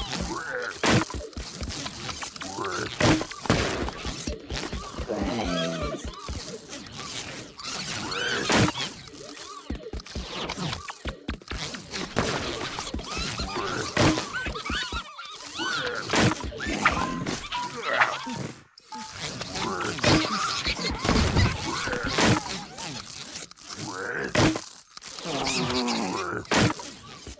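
Video game zaps, thuds and splats go off again and again.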